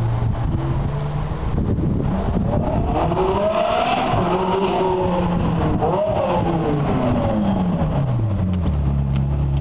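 A sports car engine roars and revs up as the car approaches.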